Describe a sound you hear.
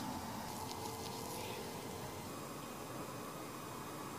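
Cotton pads rub softly against skin.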